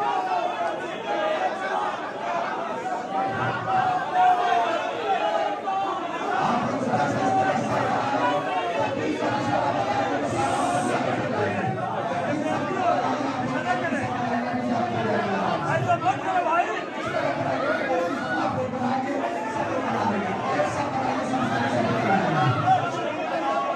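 A large crowd of men chants loudly together in a reverberant hall.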